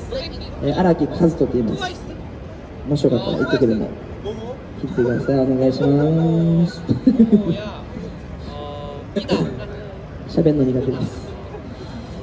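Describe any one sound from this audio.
A young man sings loudly into a microphone, amplified through a loudspeaker outdoors.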